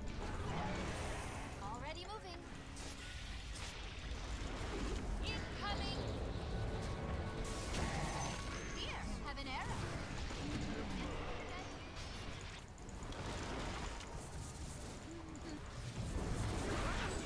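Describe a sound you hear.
Magic spells whoosh and zap repeatedly.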